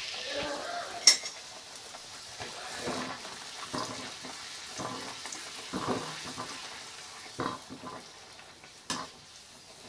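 A metal ladle scrapes and clinks against a metal pan.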